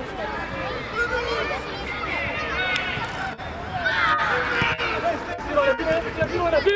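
Children shout and call out excitedly across an open field.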